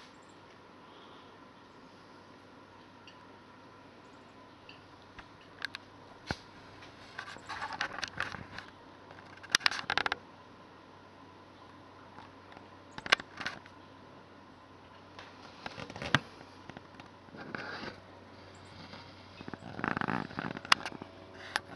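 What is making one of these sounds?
A small deer steps softly on dry wood chips.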